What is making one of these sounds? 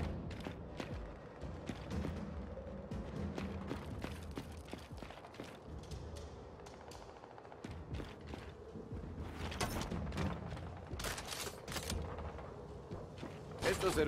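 Heavy armoured footsteps thud and clank on hard ground.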